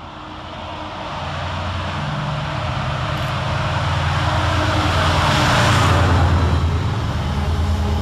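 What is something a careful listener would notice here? A diesel locomotive engine roars close by as it passes.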